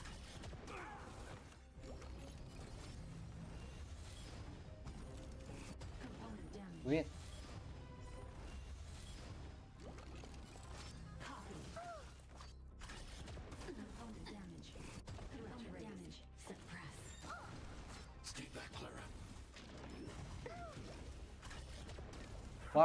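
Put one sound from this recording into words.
Magic blasts and impacts crash and whoosh repeatedly.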